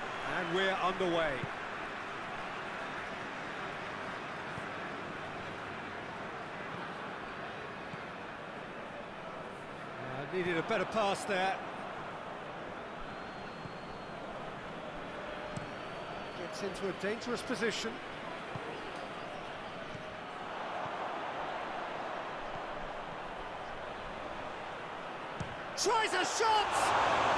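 A large crowd cheers and murmurs steadily throughout.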